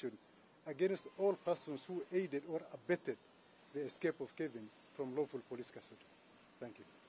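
A man speaks firmly and with emphasis, close by.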